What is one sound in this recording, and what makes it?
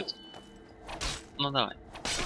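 A sword slashes into a body with a wet, heavy hit.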